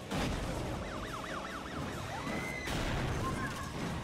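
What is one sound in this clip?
A car crashes into another car with a loud bang.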